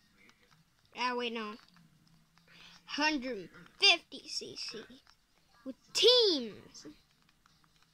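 A handheld game console plays short bright menu sounds through its small speaker.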